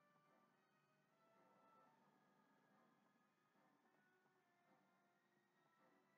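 Music plays softly from a television speaker.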